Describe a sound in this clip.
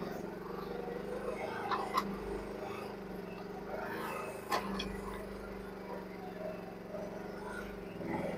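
A small excavator engine rumbles steadily in the distance.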